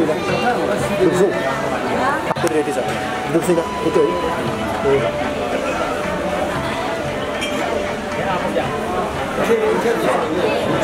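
A crowd of people chatters nearby, many voices overlapping.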